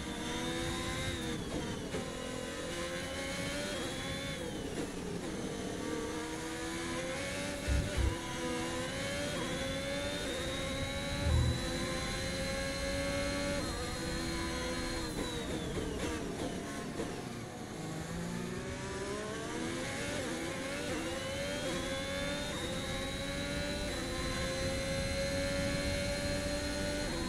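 A racing car engine roars, rising and falling in pitch as it shifts gears and brakes.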